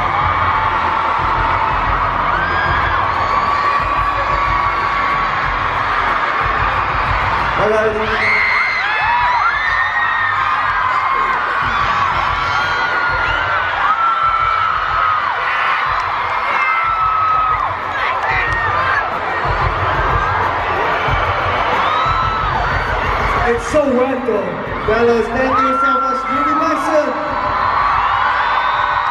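A large crowd screams and cheers loudly in a big echoing arena.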